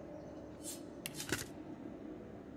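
Metal armour clinks and rustles as it is put on.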